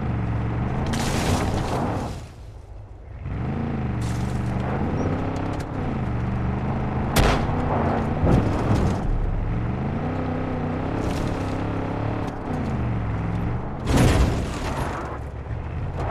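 Tyres crunch and rumble over a rough dirt track.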